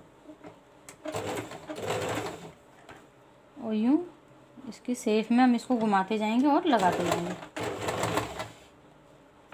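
A sewing machine runs with a fast whirring rattle in short bursts.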